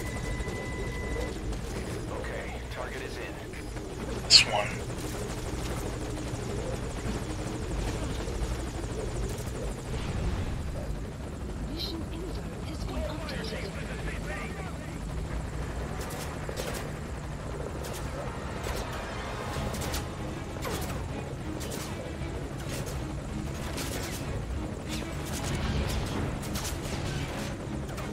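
A helicopter engine hums and its rotor thrums steadily.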